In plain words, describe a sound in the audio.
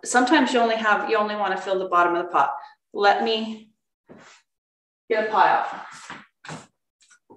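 A woman speaks calmly into a microphone, as if presenting.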